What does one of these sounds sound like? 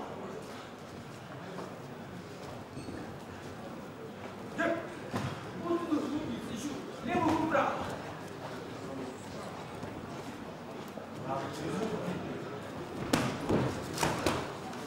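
A crowd murmurs and calls out indoors.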